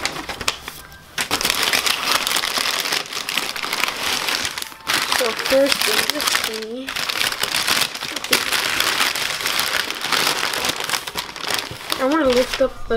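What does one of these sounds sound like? Paper and cardboard rustle and crinkle as hands dig through a box.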